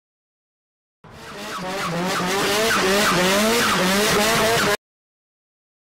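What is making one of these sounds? A car engine revs hard as a car drifts past.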